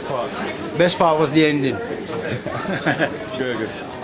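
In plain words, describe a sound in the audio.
A man talks and laughs close by.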